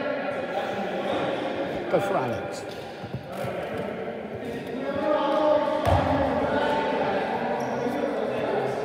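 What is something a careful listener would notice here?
Men shout and call out in a large echoing hall.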